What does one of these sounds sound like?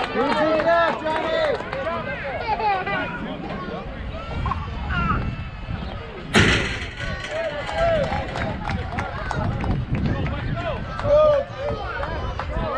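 Children shout and cheer outdoors nearby.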